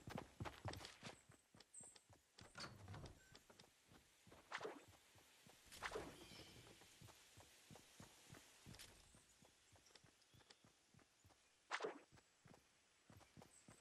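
Wooden panels snap into place with sharp clunks.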